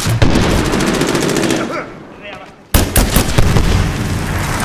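Rapid gunfire rattles loudly, then a few heavy shots ring out and fade.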